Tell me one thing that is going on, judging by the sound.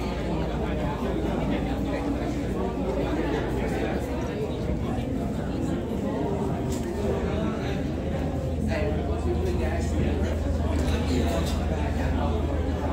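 A small crowd of adults murmur softly nearby.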